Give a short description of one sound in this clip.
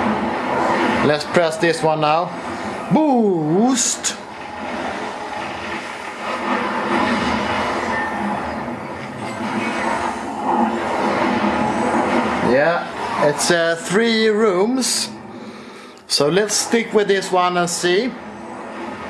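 An older man talks with animation close to the microphone.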